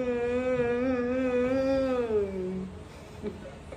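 A woman sings a long, wavering note close by.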